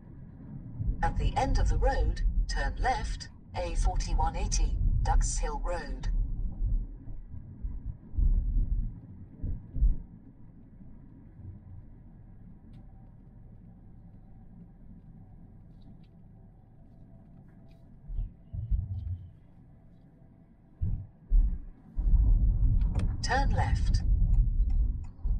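A man speaks calmly close by inside a car.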